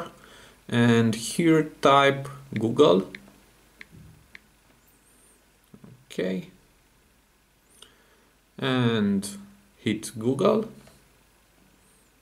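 Fingertips tap lightly on a phone's touchscreen.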